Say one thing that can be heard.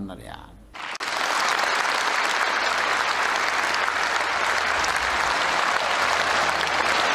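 A large crowd applauds loudly and steadily in a large echoing hall.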